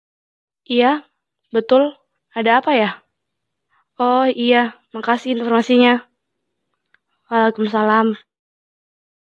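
A young woman talks calmly on a phone, close by.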